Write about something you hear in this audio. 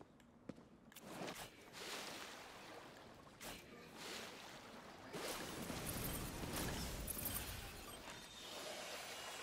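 Magic blasts crackle and whoosh in a game.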